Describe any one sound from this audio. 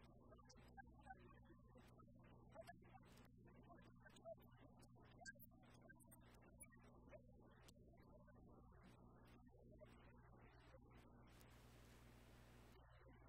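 A middle-aged man speaks calmly into a microphone in a large echoing room.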